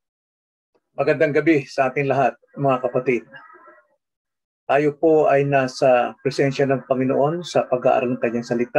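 An elderly man speaks calmly into a microphone, heard as if over an online call.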